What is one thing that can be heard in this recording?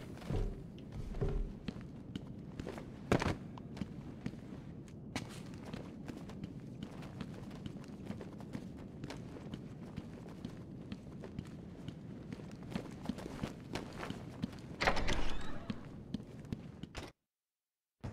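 Footsteps scuff and echo on a hard floor.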